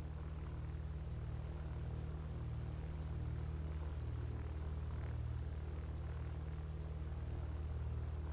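A small propeller plane's engine idles with a steady low drone.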